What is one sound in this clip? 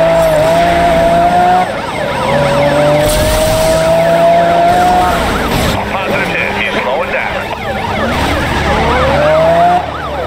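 Police sirens wail close by.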